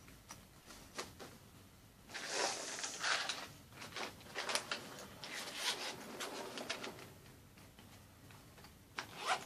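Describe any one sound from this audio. Leather bags rustle and shift as hands handle them.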